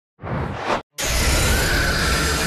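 A monstrous creature roars loudly.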